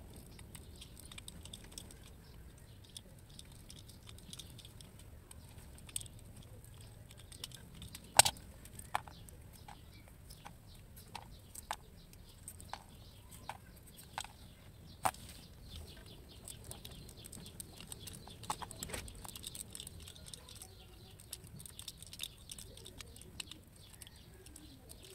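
Small scissors snip and scrape at a cable, with faint crisp clicks.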